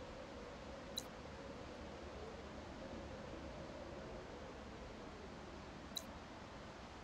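Soft game interface clicks sound a few times.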